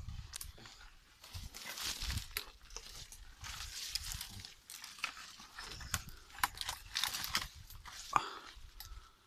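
Leaves and branches rustle close by.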